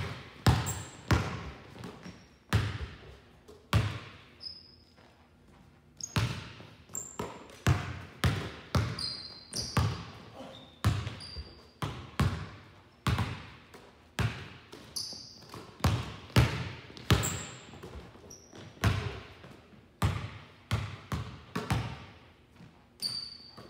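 Basketballs bounce hard on a wooden floor in a large echoing hall.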